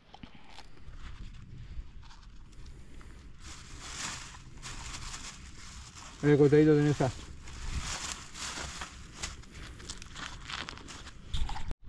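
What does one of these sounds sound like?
Crusty bread crackles as hands tear and press it.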